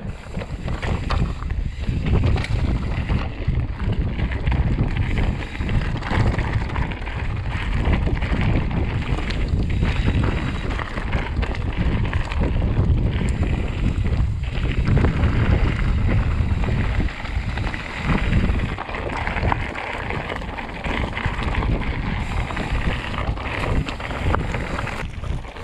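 Bicycle tyres crunch and rattle over a rough gravel track.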